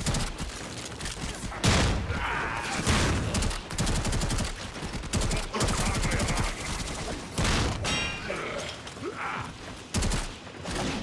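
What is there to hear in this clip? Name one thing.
Blades slash and clang in a fast fight.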